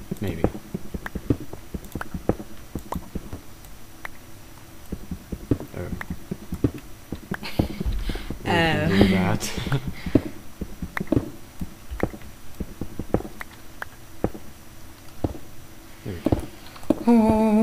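Stone blocks crack and crumble under a pickaxe, again and again.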